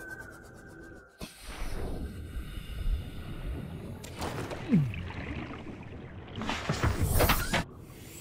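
A hatch opens and closes with a clunk.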